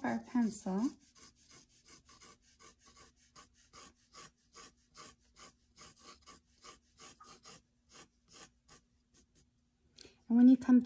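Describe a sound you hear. A pencil scratches across paper in quick, short strokes.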